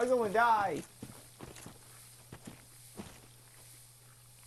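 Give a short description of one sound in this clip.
An armoured figure's footsteps tread on earth.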